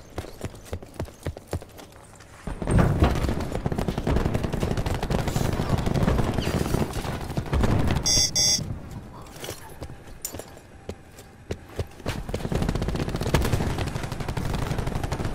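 Footsteps thud quickly on a hard floor.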